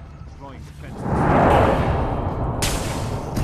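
A laser gun fires with a sharp electronic zap.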